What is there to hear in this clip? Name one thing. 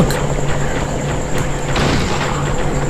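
A metal pipe thuds against a body.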